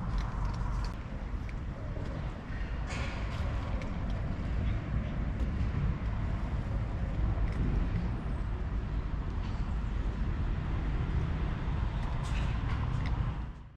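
A cat laps and chews food close by.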